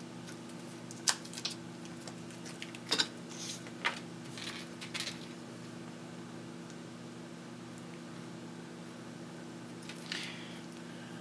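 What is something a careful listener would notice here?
Small electronic parts click and tap softly as hands handle them.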